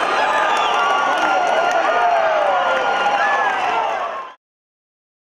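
A large indoor crowd cheers and chatters, echoing in a big hall.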